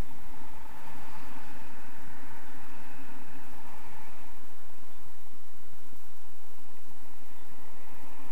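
Wind rushes steadily past a paraglider in flight.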